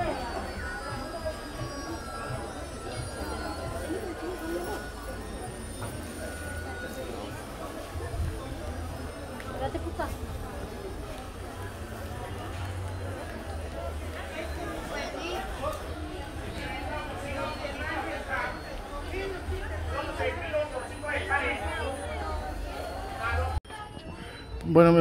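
A busy outdoor street market hums with the chatter of many voices.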